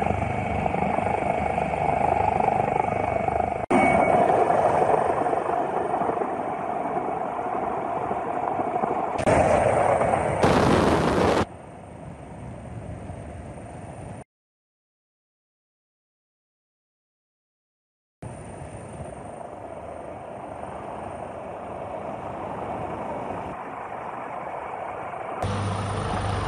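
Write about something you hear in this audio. Floodwater rushes and roars.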